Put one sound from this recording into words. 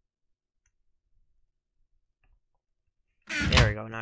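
A wooden chest thumps shut.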